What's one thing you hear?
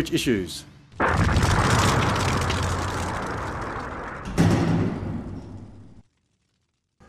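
A fiery whoosh roars and slowly fades.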